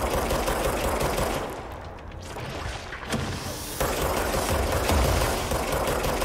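Gunshots crack and echo.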